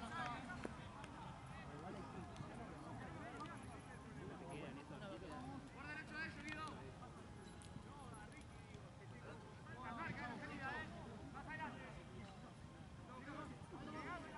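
Young men shout and call to each other across an open outdoor pitch.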